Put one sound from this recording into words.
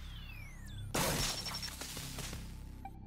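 An electric burst crackles loudly and briefly.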